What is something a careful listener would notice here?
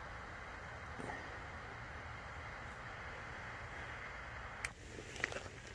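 A fuse fizzes and hisses steadily, then sputters.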